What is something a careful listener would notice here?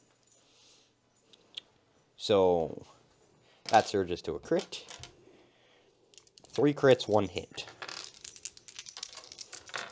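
Plastic dice click together as a hand gathers them.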